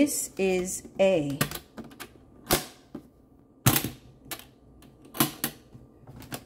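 Metal latches snap open with sharp clicks.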